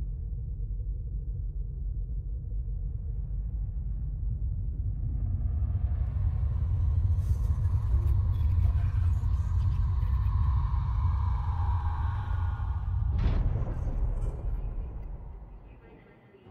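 A huge spaceship drifts past with a deep, steady rumble that swells and then fades.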